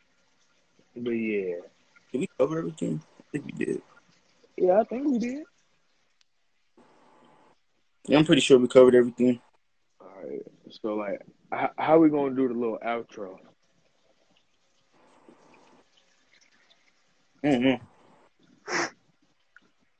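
A young man speaks casually and close to a microphone, heard as if over an online call.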